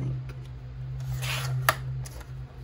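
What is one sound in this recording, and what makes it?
A paper trimmer blade slides down and slices through paper.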